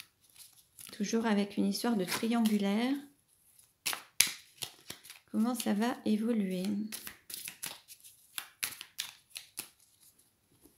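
Playing cards flick and snap as they are shuffled by hand.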